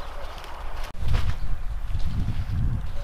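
Wind buffets outdoors in gusts.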